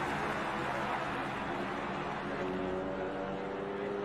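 A small toy car rolls along a plastic track.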